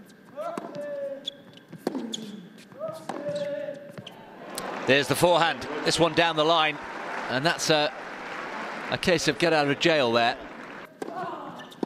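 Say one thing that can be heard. A tennis ball is struck sharply by a racket, again and again.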